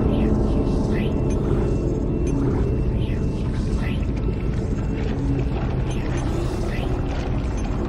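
Short electronic chirps sound as a menu selection moves.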